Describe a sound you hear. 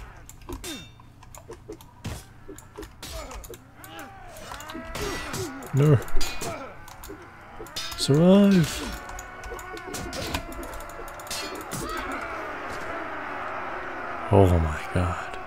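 Swords clash and clang in a battle.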